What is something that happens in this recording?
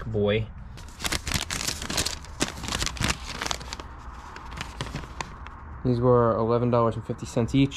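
A paper receipt crinkles and rustles in a hand.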